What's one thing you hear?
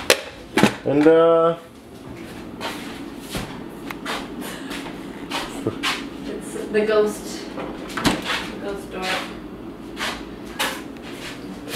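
A refrigerator door opens and then thumps shut.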